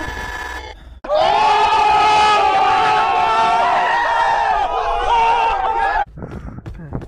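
A group of young men shout and cheer excitedly outdoors.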